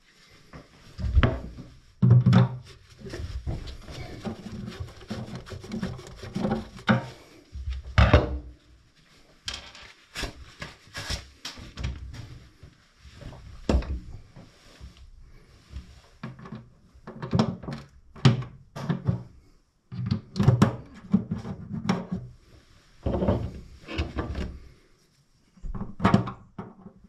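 Hands knock and rattle against metal pipe fittings up close.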